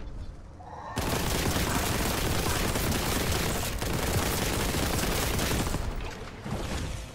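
A heavy gun fires in rapid, roaring bursts.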